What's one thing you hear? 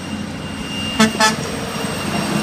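A truck's air horn blasts twice, loud and close.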